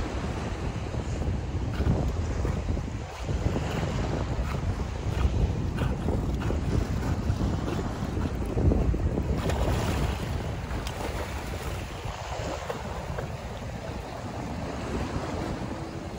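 Small waves slosh and lap all around, outdoors in gusty wind.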